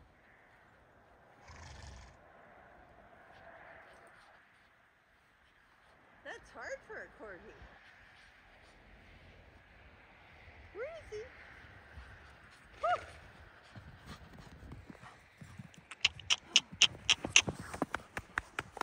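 A small dog bounds through deep snow, crunching and swishing.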